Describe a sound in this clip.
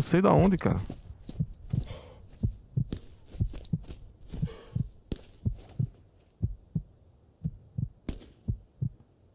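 Footsteps crunch steadily through dry grass.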